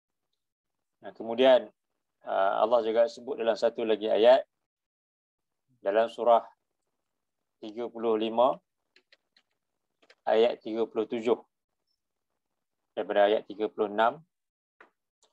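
A young man speaks calmly into a microphone, with pauses.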